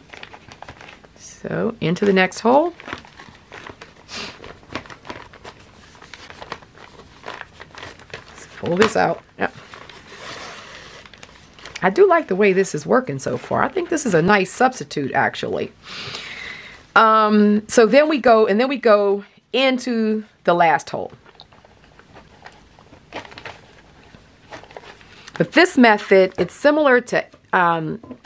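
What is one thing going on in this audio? Paper pages rustle and crinkle as they are handled.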